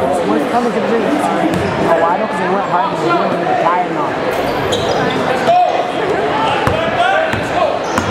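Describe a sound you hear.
A basketball bounces on the court with dull thumps.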